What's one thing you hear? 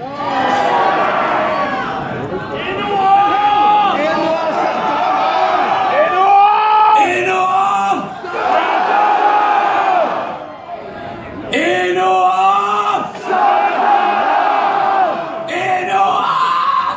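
An electric guitar plays loudly through a loudspeaker system in a large echoing hall.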